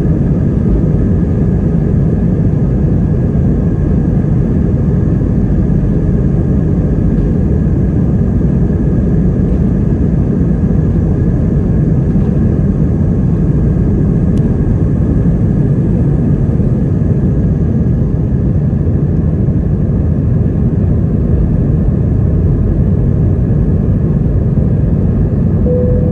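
Jet engines roar loudly and steadily inside an airliner cabin.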